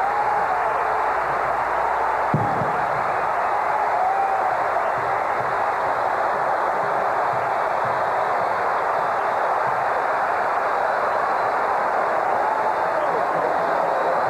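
A huge stadium crowd roars and cheers loudly.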